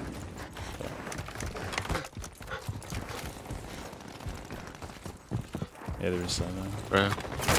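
Footsteps run quickly over pavement and dirt.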